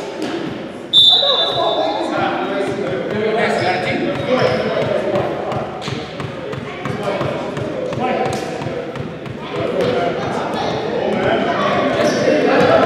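Men's voices call out and chatter in a large echoing gym.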